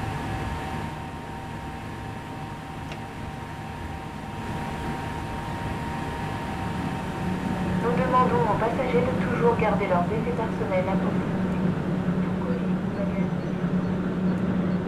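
A stationary electric train hums steadily nearby.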